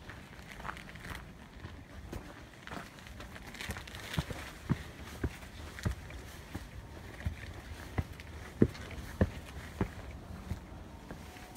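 Footsteps tread slowly on stone steps outdoors.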